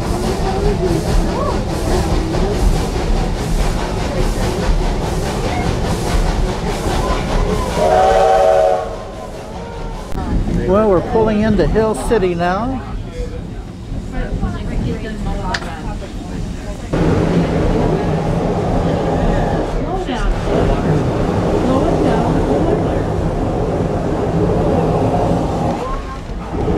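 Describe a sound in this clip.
A train rumbles and clatters along the tracks.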